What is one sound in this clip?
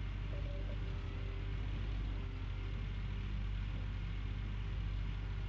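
A diesel engine rumbles steadily at idle.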